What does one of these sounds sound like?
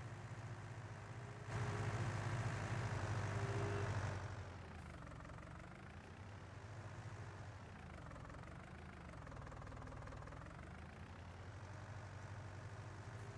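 A tractor engine idles with a low steady rumble.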